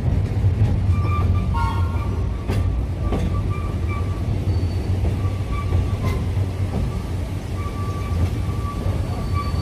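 Train wheels squeal faintly on a curve.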